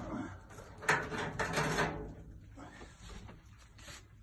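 A glass-paned metal cabinet door swings open.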